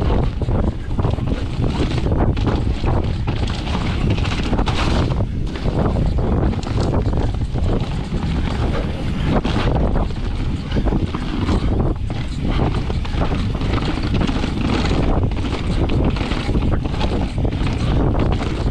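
A bicycle rattles and clanks over bumps.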